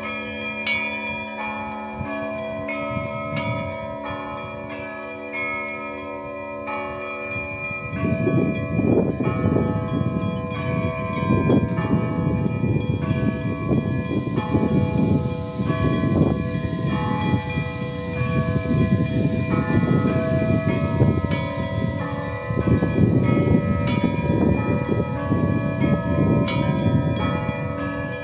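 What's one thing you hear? Church bells ring out in a peal.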